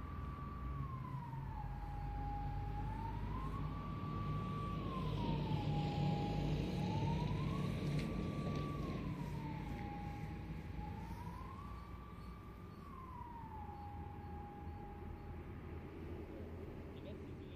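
A siren wails nearby, slowly rising and falling in pitch, then winds down.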